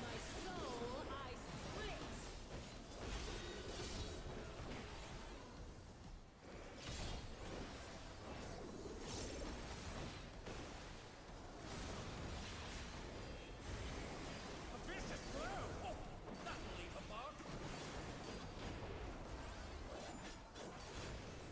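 Magic blasts crackle and boom in rapid bursts.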